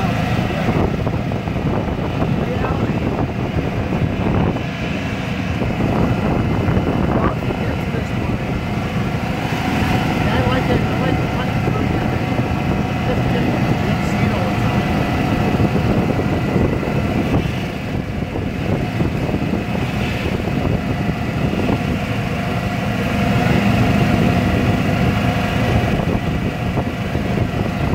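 A vehicle engine hums steadily as it drives along.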